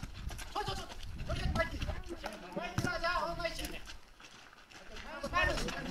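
A volleyball is struck by hand with dull thumps.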